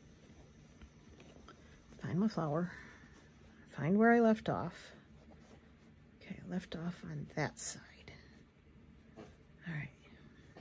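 Soft fabric rustles as hands handle it.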